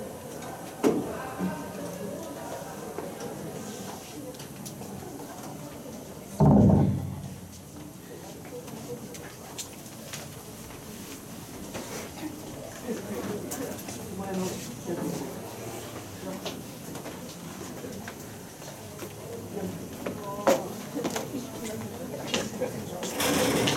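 A live band plays loud music in a large echoing hall.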